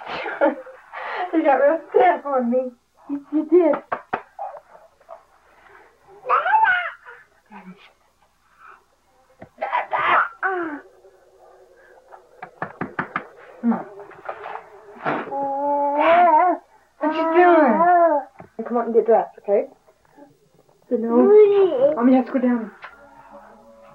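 A young woman talks and laughs playfully, close by.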